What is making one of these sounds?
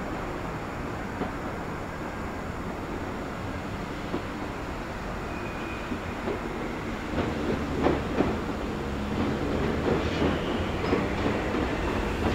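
An electric train rumbles slowly toward the listener.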